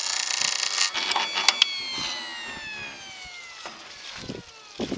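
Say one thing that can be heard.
A motor hums and winds down at the end.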